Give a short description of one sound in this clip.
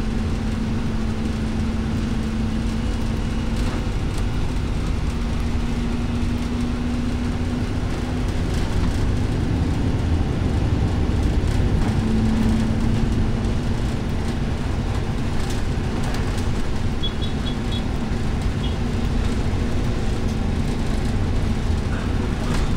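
A vehicle engine hums as it drives along a city road.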